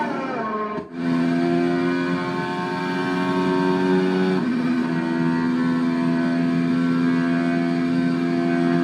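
A racing car engine drones loudly up close.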